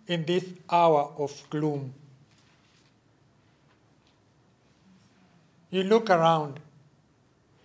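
An elderly man speaks calmly through a microphone, with pauses.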